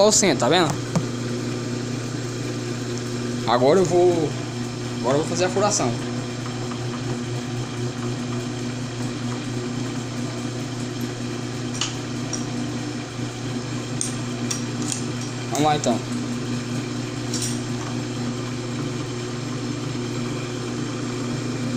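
A drill bit bores into spinning metal with a faint scraping.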